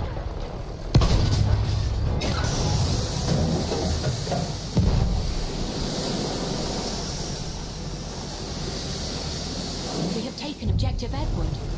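A tank cannon fires with a loud blast.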